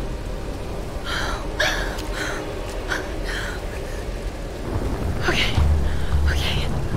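A young woman speaks quietly and breathlessly.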